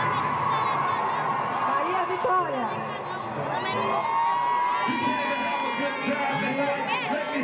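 A crowd of children and adults chatter outdoors.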